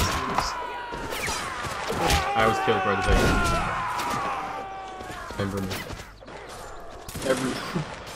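Muskets fire in rapid, scattered shots.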